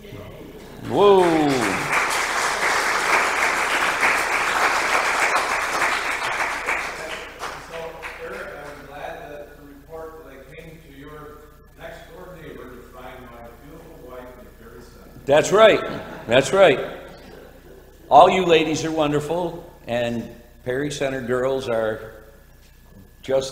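An elderly man speaks with animation through a microphone in an echoing hall.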